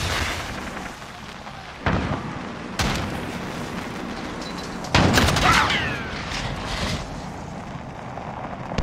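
A small robot vehicle's wheels whir as it drives along.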